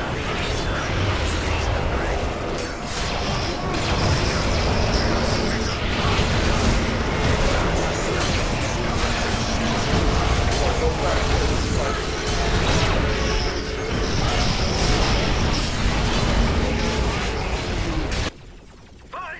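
Gunfire and explosions crackle in a dense battle.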